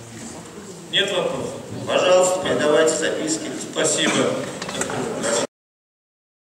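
A man speaks into a microphone, heard over loudspeakers in a large echoing hall.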